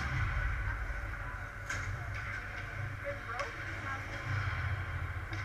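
Skates scrape and swish on ice in a large echoing rink.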